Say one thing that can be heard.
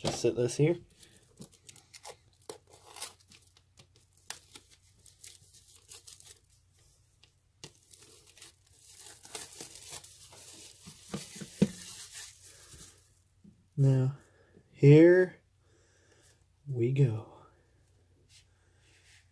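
A plastic case clicks and taps as hands handle it.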